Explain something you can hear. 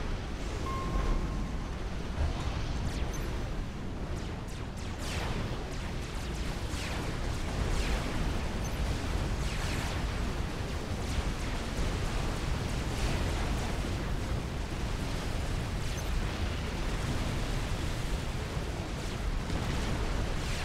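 Low rumbling explosions go off.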